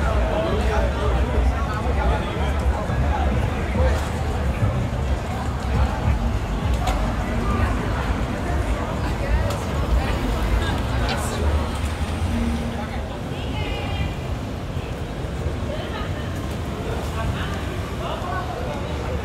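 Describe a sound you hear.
Men and women talk nearby on the street.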